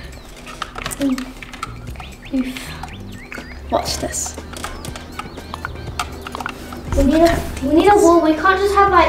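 A young girl talks with animation close to a microphone.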